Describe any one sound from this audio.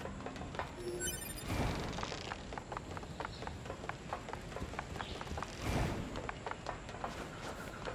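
Footsteps run quickly across a wooden bridge.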